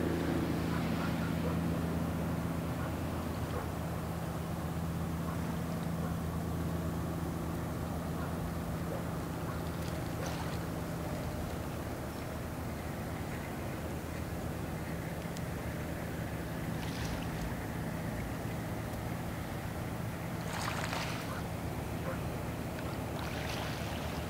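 A large ship's engine drones low and steady as the ship passes close by.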